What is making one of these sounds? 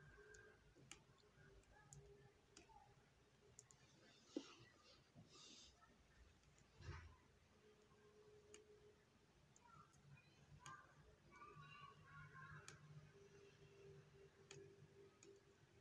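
A crochet hook ticks softly as yarn is pulled through stitches.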